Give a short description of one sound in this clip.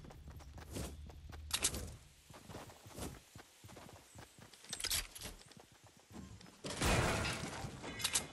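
Footsteps patter quickly across the ground.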